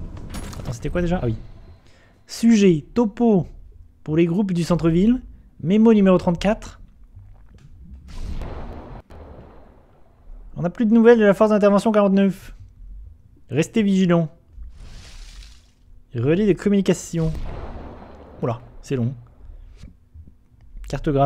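A young man talks with animation into a microphone close by.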